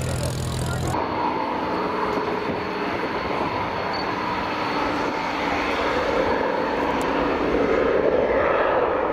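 A propeller plane's engine roars overhead, droning steadily and growing louder.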